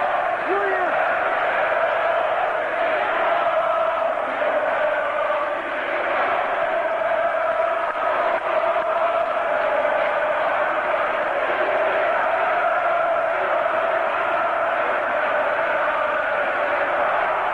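A huge stadium crowd chants loudly in unison.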